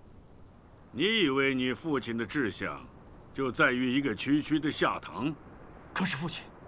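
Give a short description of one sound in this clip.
A middle-aged man speaks in a deep, measured voice, close by.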